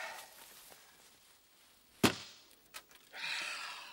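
A car door opens and shuts with a thud.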